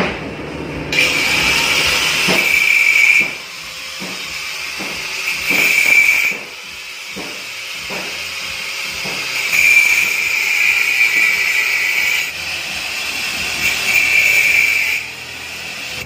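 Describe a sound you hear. An angle grinder whines in short bursts as it cuts metal.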